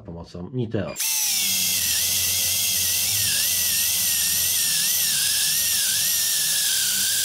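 An electric drill whines steadily as it bores into wood.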